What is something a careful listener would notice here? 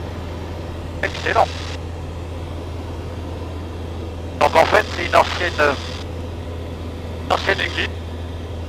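A man speaks briefly over a headset intercom.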